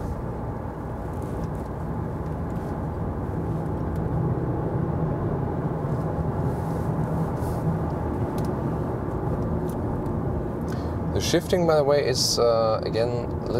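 A car engine hums steadily with road noise from inside the car.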